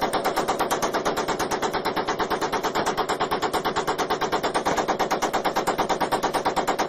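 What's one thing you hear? A machine gun fires a long, rapid, unbroken burst outdoors.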